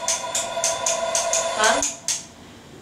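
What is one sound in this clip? An intercom buzzes in short repeated bursts.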